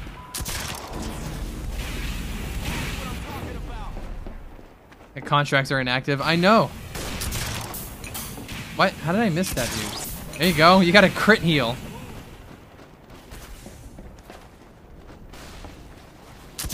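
A crossbow fires with sharp snaps.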